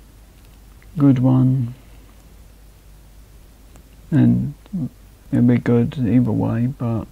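A young man speaks casually into a nearby microphone, in short bursts.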